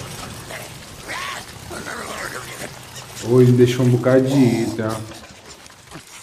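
A young man speaks with animation into a microphone, close up.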